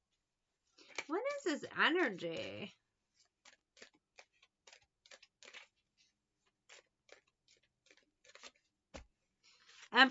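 Playing cards riffle and slap softly as they are shuffled.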